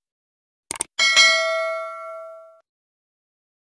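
A bright bell chimes and rings out.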